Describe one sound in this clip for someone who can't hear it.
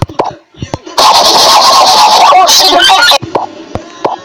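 A phone loudspeaker loudly plays back a warped, robotic-sounding recording.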